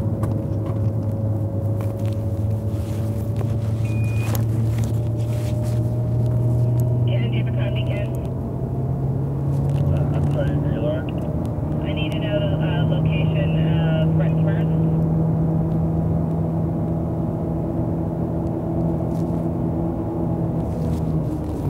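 A car engine drones steadily from inside the car, rising in pitch as it speeds up.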